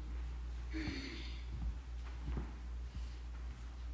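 Footsteps cross a wooden floor.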